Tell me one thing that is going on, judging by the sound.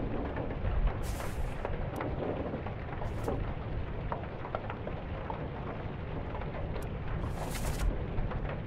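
A paper page flips with a quick rustling swish.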